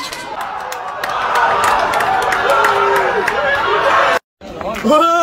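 Young men shout and cheer outdoors after a goal.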